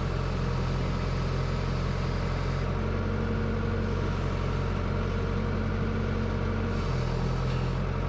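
An excavator bucket scrapes and digs into soil.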